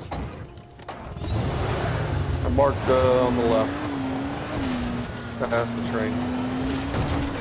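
A buggy engine roars and revs as the buggy drives over rough ground.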